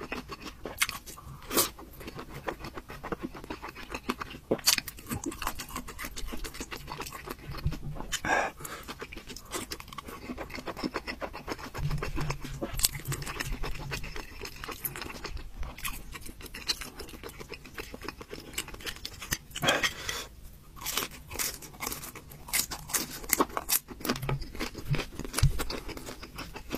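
A young man chews and slurps food wetly up close.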